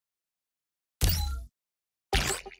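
A soft electronic whoosh sounds as a menu slides open.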